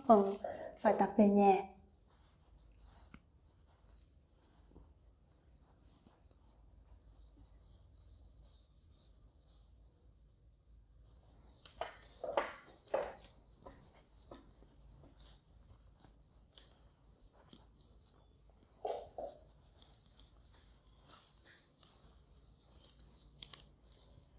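A cloth eraser rubs softly across a chalkboard.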